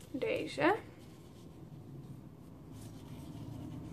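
Paper crinkles as hands unwrap a small bundle.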